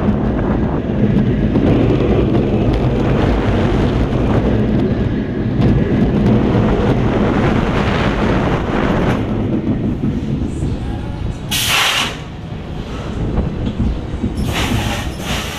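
A roller coaster train rumbles and clatters loudly along its track.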